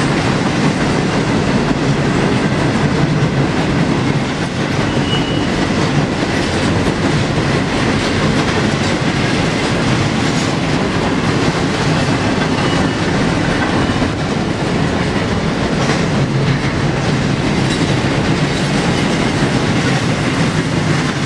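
A long freight train rumbles and clatters steadily past on the rails nearby.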